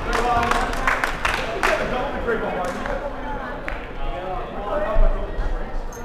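Men call out and shout across a large echoing hall.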